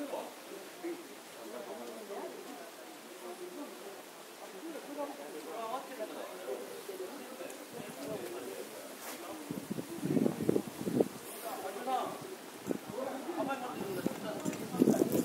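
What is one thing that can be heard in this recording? A crowd of men chatter and call out nearby outdoors.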